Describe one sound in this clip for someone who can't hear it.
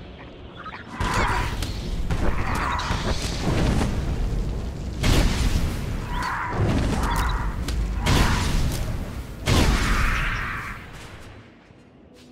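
Energy blasts crackle and boom in bursts.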